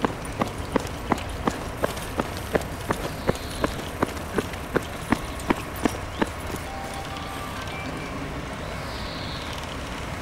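A large truck engine rumbles low as the truck reverses slowly.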